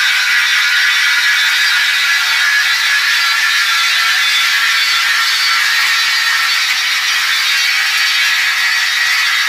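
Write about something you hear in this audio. A floor polishing machine whirs and hums steadily.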